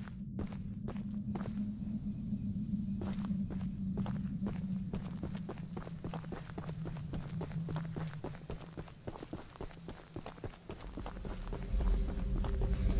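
Footsteps crunch through dry grass and brush outdoors.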